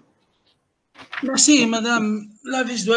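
A second man speaks calmly through an online call.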